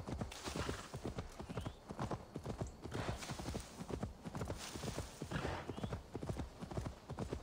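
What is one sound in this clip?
Horse hooves thud rapidly on soft ground at a gallop.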